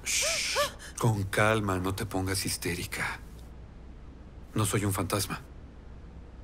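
A man speaks.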